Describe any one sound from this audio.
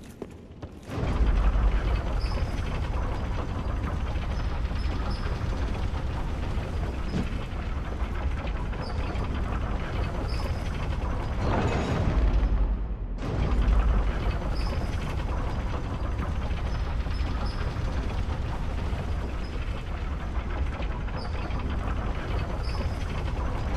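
A heavy lift rumbles and grinds steadily as it moves.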